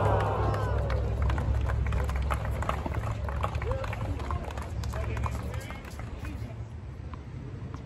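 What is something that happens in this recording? A crowd murmurs and chatters in the open air.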